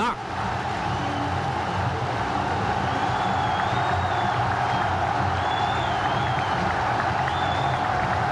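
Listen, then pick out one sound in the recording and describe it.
Whistles and horns shrill from the stadium crowd.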